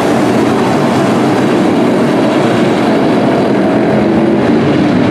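Race car engines roar loudly.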